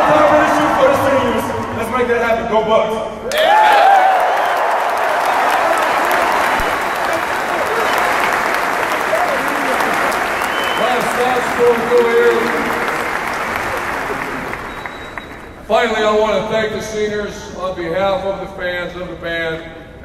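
A brass band plays loudly in a large echoing arena.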